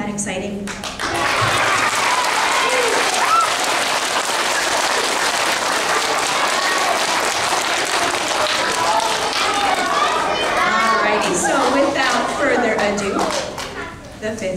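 A group of children shout and cheer loudly together.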